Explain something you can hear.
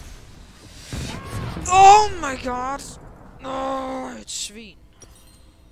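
A video game plays short magical sound effects.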